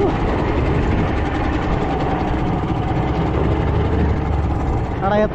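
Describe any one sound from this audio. Water splashes against the hull of a moving boat.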